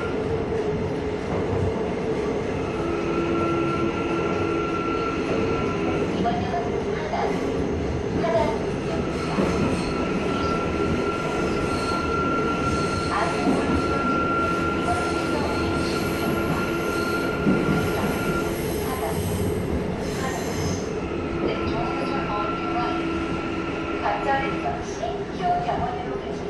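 A subway train rumbles along the rails from inside the car.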